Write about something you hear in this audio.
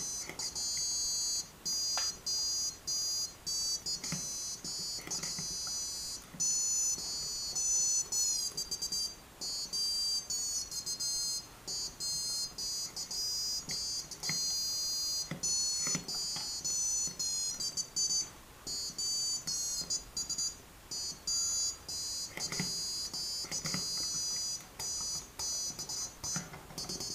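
A piezo buzzer gives off high, shifting electronic tones as sliders are moved.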